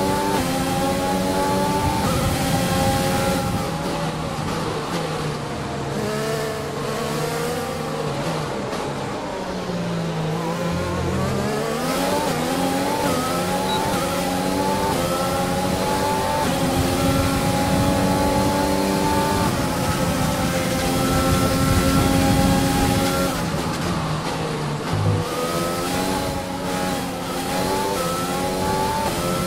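A racing car engine screams at high revs, dropping in pitch when braking and climbing again as it accelerates.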